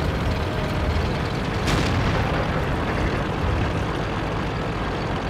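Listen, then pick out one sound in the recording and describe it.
A tank engine rumbles steadily as the tank drives forward.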